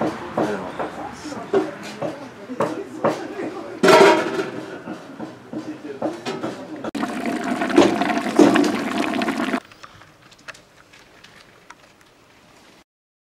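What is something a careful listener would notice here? Several people walk with footsteps on pavement.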